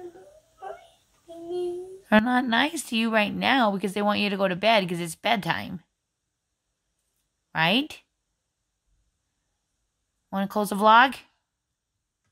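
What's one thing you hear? A young boy speaks close by in a whiny, upset voice.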